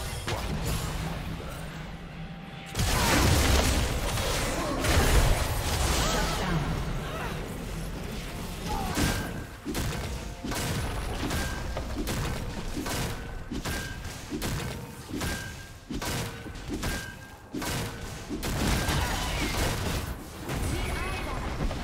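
Magic blasts and sword hits crackle and burst in a fast fight.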